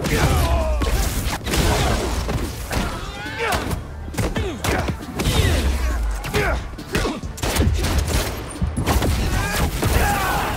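Punches and kicks thud hard in quick succession.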